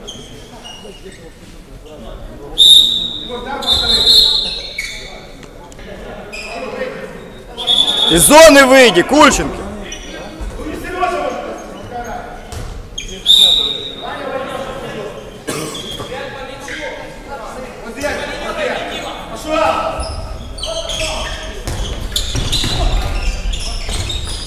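Players shout to each other across an echoing hall.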